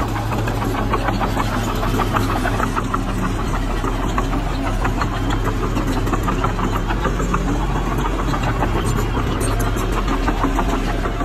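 Metal tracks clank and squeak as a bulldozer moves.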